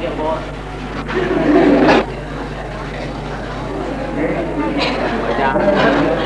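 A man talks and laughs cheerfully nearby.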